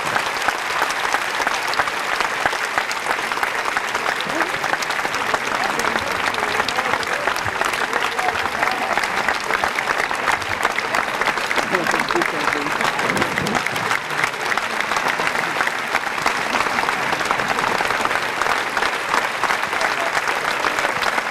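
A large audience applauds steadily and loudly in the open air.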